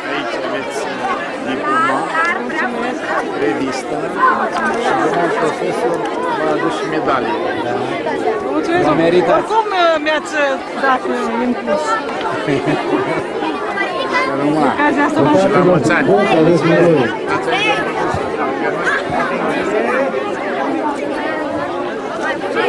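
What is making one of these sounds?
A crowd of children chatters and calls out outdoors.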